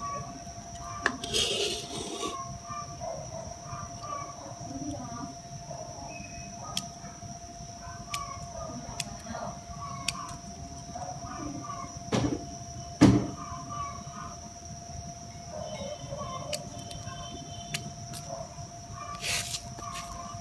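Pruning shears snip through thin branches with sharp clicks.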